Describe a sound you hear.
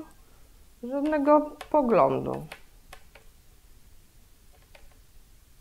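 Yarn and a plastic knitting loom rustle and click softly.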